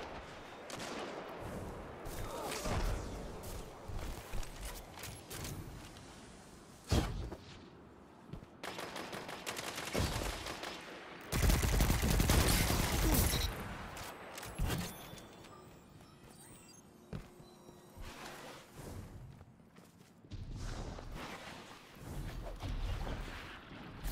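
Footsteps run over ground.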